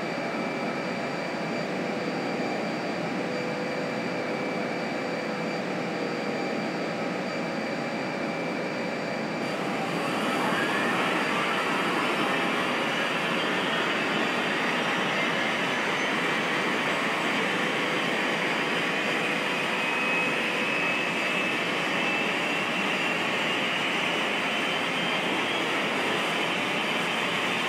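Jet engines whine and roar steadily, growing louder partway through.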